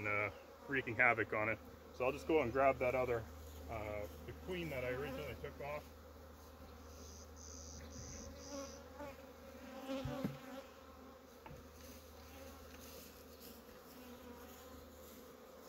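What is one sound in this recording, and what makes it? Bees buzz around outdoors.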